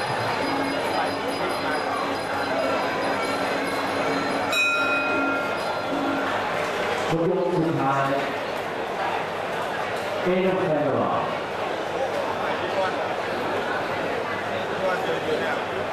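A large crowd murmurs and cheers in a big arena.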